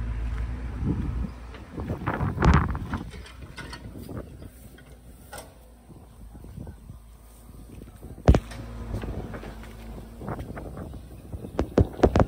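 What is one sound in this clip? Soil and clods thud and scrape as an excavator bucket digs.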